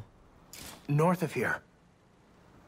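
A young man speaks briefly and excitedly into a microphone.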